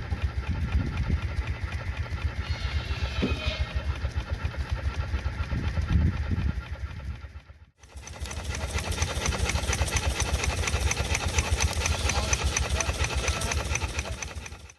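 Steam hisses from an exhaust.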